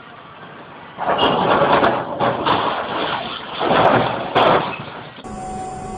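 A tracked excavator tips over and thuds onto rocky ground.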